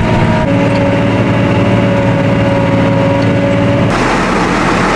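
A cultivator rattles and clanks over the soil.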